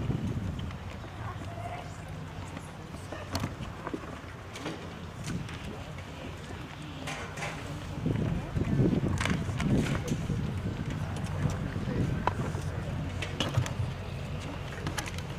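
A school band warms up outdoors, with scattered horn and saxophone notes.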